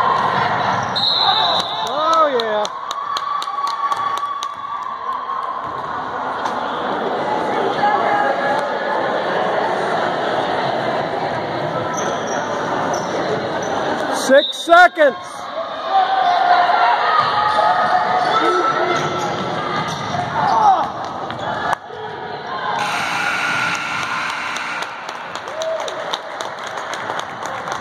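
A whistle blows loudly.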